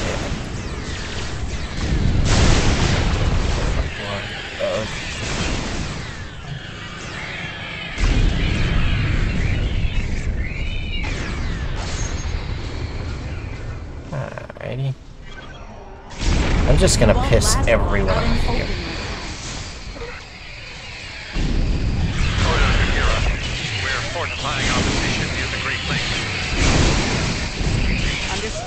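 Insect-like creatures screech and hiss as they attack.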